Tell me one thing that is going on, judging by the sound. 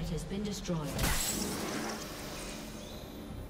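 A fantasy game's spell effect bursts with a sudden whoosh and fizzles out.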